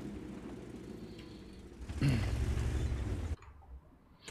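A tank engine rumbles loudly.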